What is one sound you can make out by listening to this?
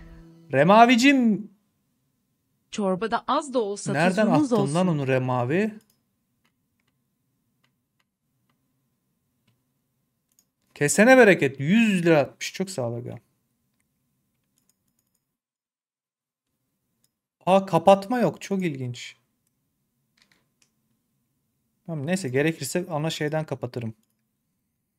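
A man talks with animation into a close microphone, pausing between phrases.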